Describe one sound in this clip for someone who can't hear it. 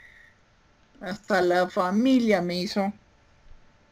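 An elderly woman speaks briefly and with animation over an online call.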